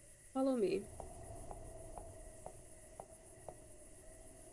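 Footsteps tap evenly on pavement.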